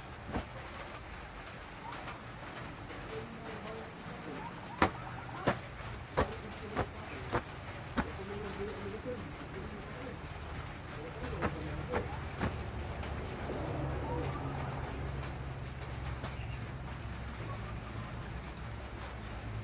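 Cloth rustles as a garment is handled and shaken out.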